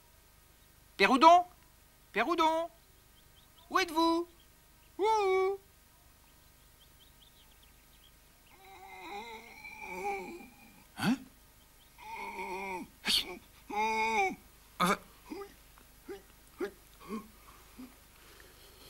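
A duckling quacks loudly several times.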